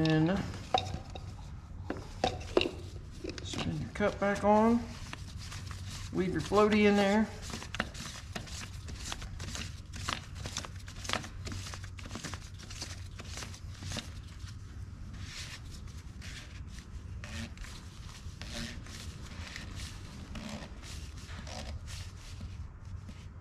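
Plastic parts click and rattle as hands work on an engine filter.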